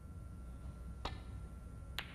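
A cue strikes a ball with a sharp tap.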